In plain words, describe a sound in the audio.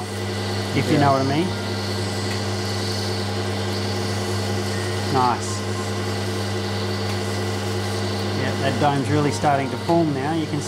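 A stone scrapes softly against a spinning wet wheel.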